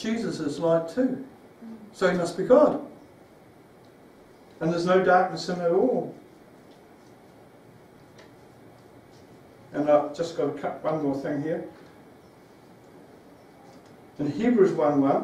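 A man reads aloud slowly, with pauses, in a room with a slight echo.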